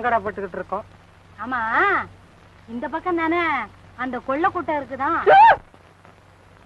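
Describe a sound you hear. A young woman sings a melody in short phrases.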